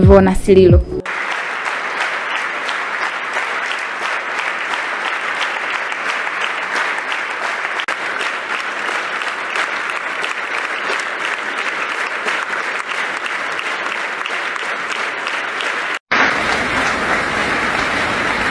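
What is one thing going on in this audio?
A large crowd claps hands steadily in a big echoing hall.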